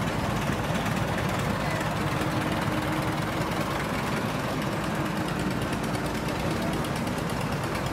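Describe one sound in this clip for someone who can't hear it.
Tractor tyres roll over wet cobblestones.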